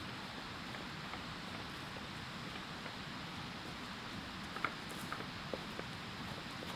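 Footsteps thud and swish through wet grass.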